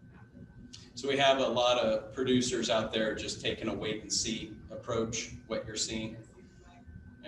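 A man speaks clearly in a large echoing hall.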